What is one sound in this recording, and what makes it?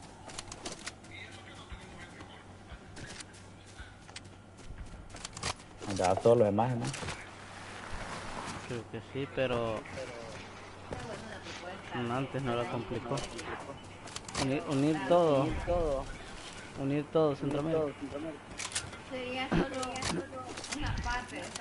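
Footsteps patter quickly on grass.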